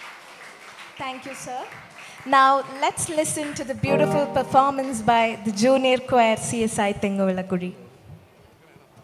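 A children's choir sings together through microphones.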